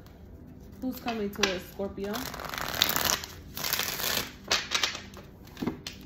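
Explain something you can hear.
Playing cards shuffle and riffle with quick papery rustles.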